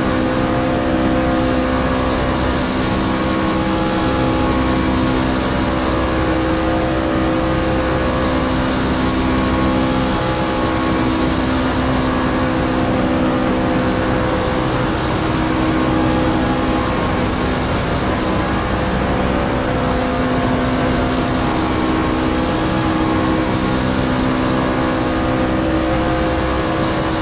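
Tyres hum on the track.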